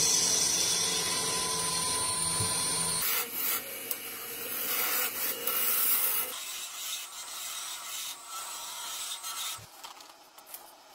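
A chisel scrapes and hisses against turning wood.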